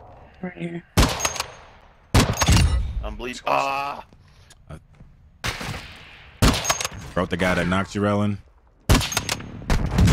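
Sniper rifle shots crack sharply.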